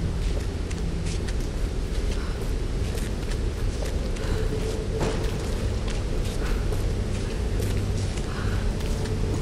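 Footsteps crunch slowly on stony ground.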